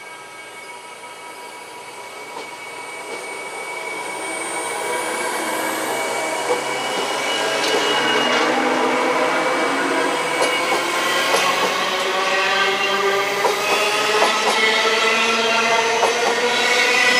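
An electric train rolls past close by, its motors whining and growing louder.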